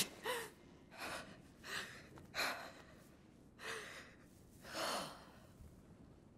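A young woman breathes heavily and shakily.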